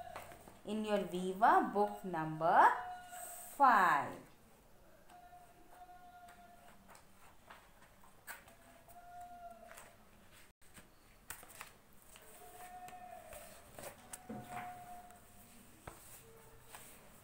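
Book pages rustle and flip.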